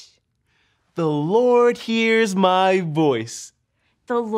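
A young man speaks in a lively, sing-song voice close by.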